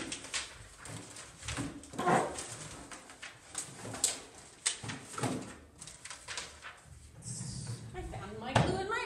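Things rustle and clatter as a drawer is rummaged through.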